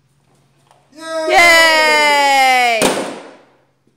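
A toddler squeals with delight close by.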